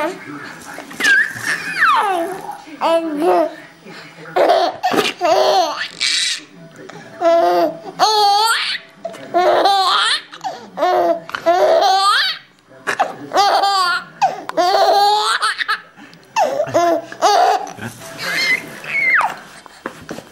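A baby squeals with high-pitched delight.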